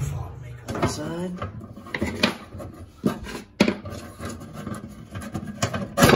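A plastic knob rattles as it is unscrewed from a metal handle.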